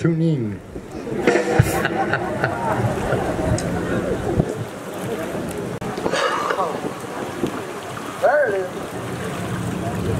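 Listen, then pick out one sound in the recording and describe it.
Small waves lap gently against a rocky shore.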